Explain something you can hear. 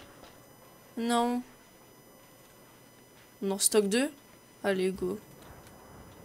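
A young woman speaks in short, lively bursts close to a microphone.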